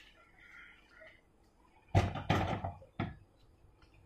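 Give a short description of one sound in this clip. A pot knocks down onto a stove.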